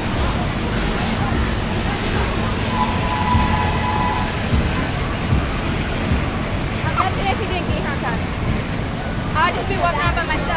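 A fairground ride rumbles and hums steadily.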